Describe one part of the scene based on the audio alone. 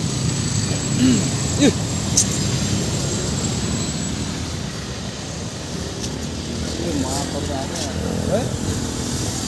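A monkey gives short high squeaks nearby.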